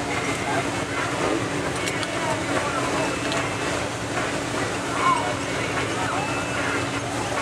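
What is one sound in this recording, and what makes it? A crowd of spectators chatters outdoors.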